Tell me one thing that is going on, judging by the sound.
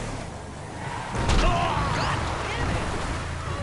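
Tyres skid on loose dirt.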